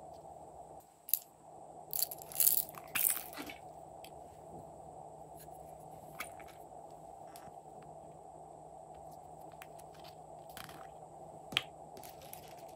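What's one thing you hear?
A small plastic lid snaps open with a click.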